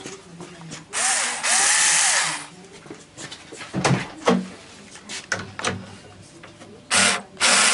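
A small electric screwdriver whirs in short bursts.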